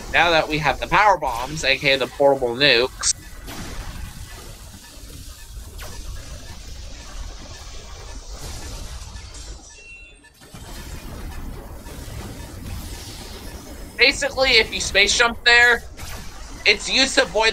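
Laser blasts and explosions from a video game crackle.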